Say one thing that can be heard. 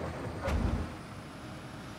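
Dirt thuds as an excavator bucket dumps it.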